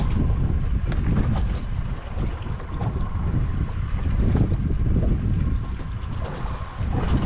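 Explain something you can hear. Water laps against a boat's hull.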